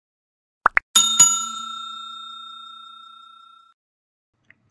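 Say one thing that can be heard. A bell chimes once and rings out slowly.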